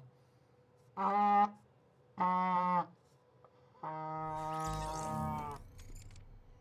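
A young man blows a toy horn in short, buzzing blasts.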